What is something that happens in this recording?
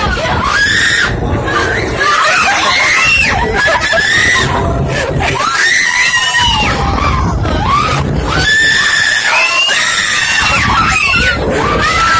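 A roller coaster rumbles and rattles along its track close by.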